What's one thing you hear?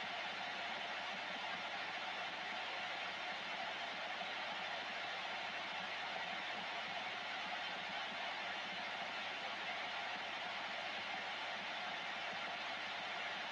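Steady radio static hisses from a loudspeaker.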